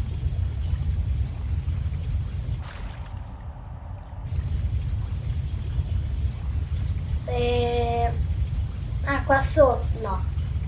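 A small submarine's motor hums low and steadily underwater.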